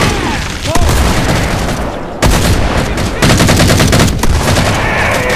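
An automatic rifle fires rapid bursts in a video game.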